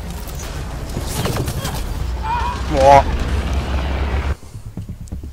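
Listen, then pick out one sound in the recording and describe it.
An energy weapon crackles and blasts.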